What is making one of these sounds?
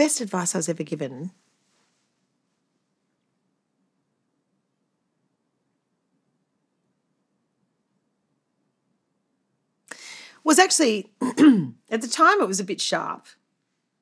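A woman speaks calmly and close by, then talks with animation.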